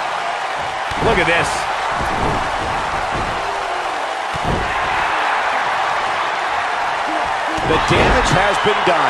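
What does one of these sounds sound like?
Heavy bodies thud against a wrestling ring mat.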